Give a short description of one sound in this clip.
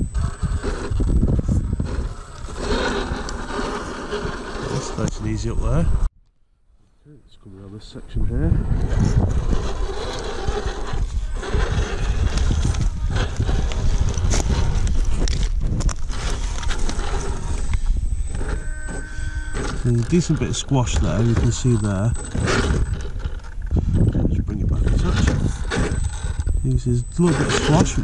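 A small electric motor whines and rises in pitch as it strains.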